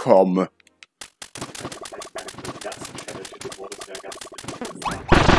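Video game fighting effects clatter with rapid hits and zaps.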